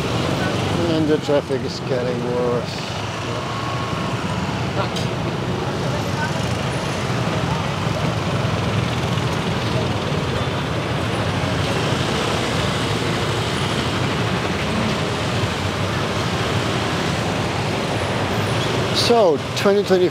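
Many motor scooter engines rumble in slow, crawling traffic.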